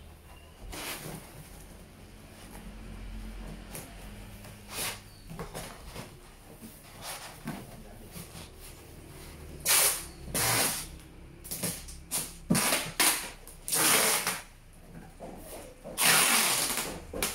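Plastic wrapping and cardboard rustle and crinkle as they are handled.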